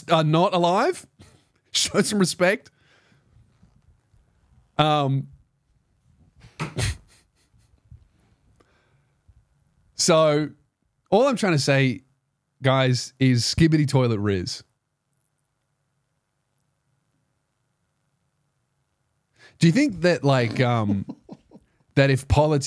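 A man speaks close to a microphone with animation, in short bursts with pauses.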